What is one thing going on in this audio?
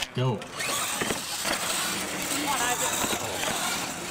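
Plastic tyres rattle over wooden ramps.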